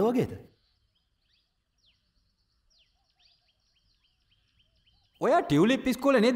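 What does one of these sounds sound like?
A man speaks loudly and with animation nearby.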